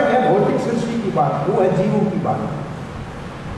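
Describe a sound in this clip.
An elderly man speaks into a microphone in a slow, measured way.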